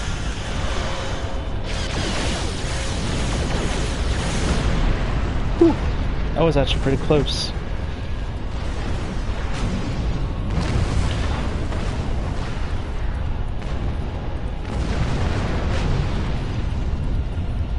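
A deep engine rumble drones steadily.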